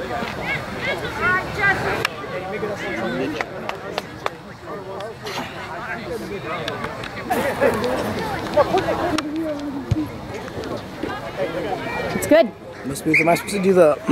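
Young players chatter and shout to each other outdoors.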